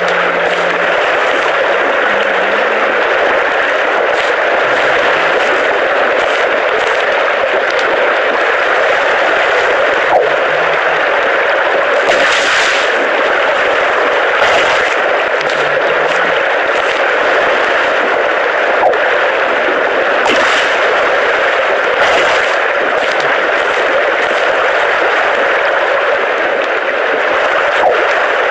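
Ocean waves wash and splash steadily all around.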